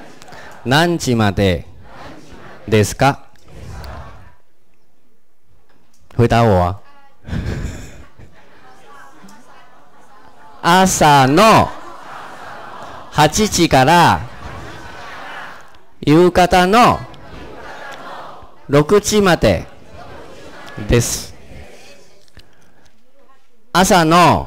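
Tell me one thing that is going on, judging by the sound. A man speaks slowly and clearly into a microphone, heard through a loudspeaker in an echoing room, with pauses between phrases.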